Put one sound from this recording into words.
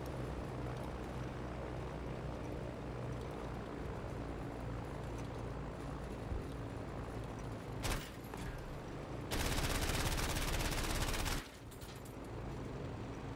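A propeller plane's engine drones steadily throughout.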